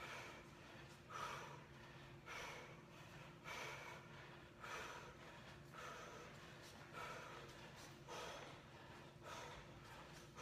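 A man breathes out sharply in a steady rhythm, close by.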